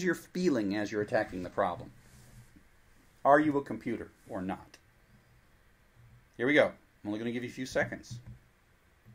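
A middle-aged man speaks calmly and thoughtfully, close to a microphone.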